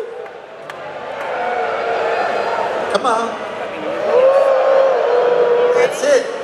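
A man sings long, held notes loudly through loudspeakers in a large echoing arena.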